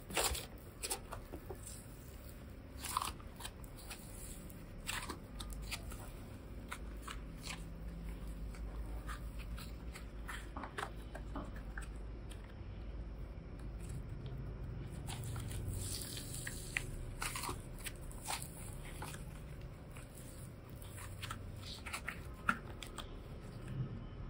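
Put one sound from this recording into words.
Sticky clay crackles and pops as it is stretched.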